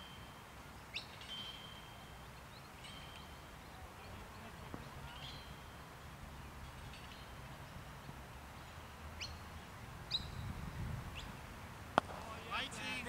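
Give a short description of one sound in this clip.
A cricket bat knocks a ball with a sharp crack.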